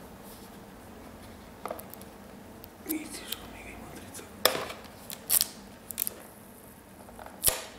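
A stiff plastic case clicks and creaks as hands handle it.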